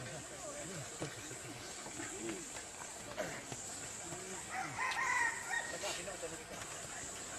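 Several men talk and call out to each other nearby, outdoors.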